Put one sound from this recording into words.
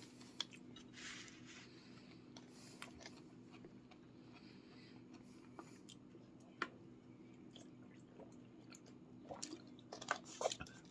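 A plastic water bottle crinkles and clicks in a hand.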